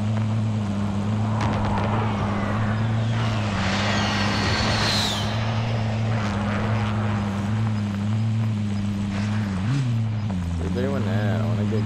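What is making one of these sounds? Tyres rumble over grass and dirt.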